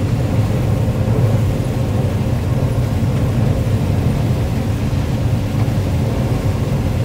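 Cut stalks rattle and thrash against the harvester.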